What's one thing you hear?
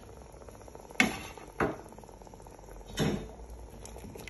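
A spoon stirs thick soup.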